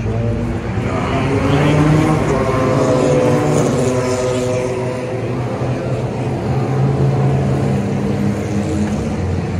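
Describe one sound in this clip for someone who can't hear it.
Racing car engines roar past at high speed, one after another.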